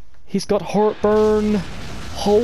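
A burst of fire blasts with a rushing roar.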